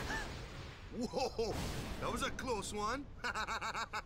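A young man exclaims with surprise and relief.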